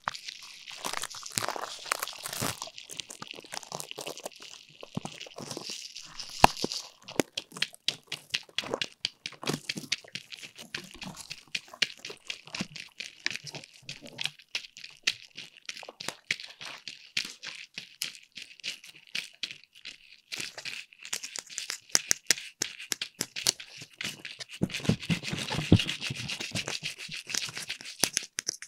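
Fingernails tap and scratch on a hollow plastic pumpkin close to a microphone.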